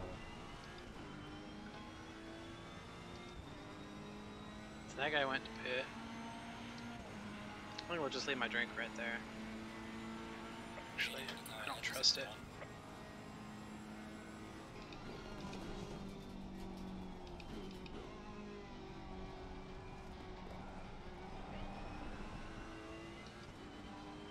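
A racing car engine drones steadily, rising and falling in pitch as it shifts gears.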